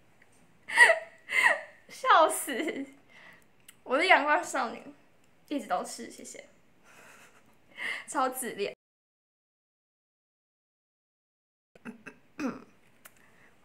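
A young woman speaks close to a microphone, cheerful and animated.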